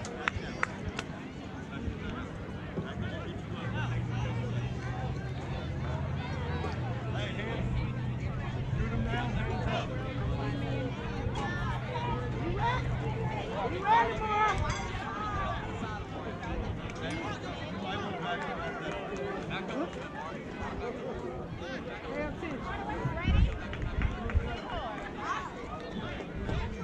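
Young players call out and shout from across an open field.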